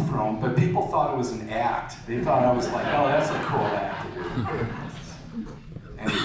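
A man speaks into a microphone, echoing through loudspeakers.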